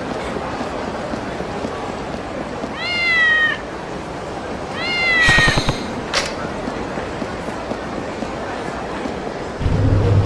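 A busy street crowd murmurs steadily in the background.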